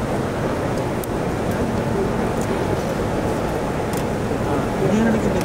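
A large crowd murmurs and talks quietly all around.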